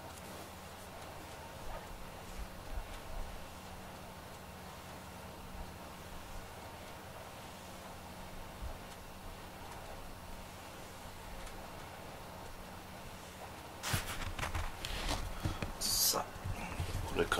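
A cat purrs softly up close.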